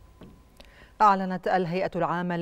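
A woman speaks clearly and steadily into a microphone, close by.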